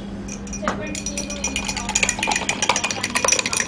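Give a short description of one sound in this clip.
A spoon clinks quickly against a glass while stirring.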